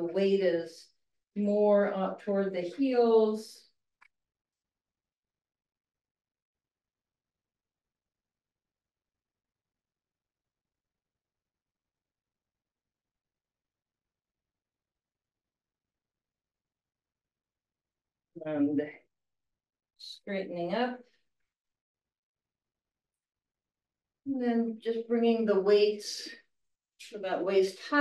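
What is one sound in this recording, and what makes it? An elderly woman speaks calmly, heard through a microphone on an online call, pausing between instructions.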